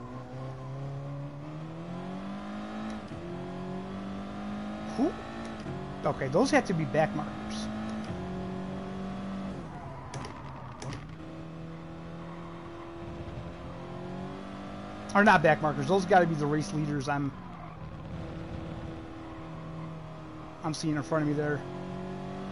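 A race car engine drones and shifts pitch as the car accelerates through the gears.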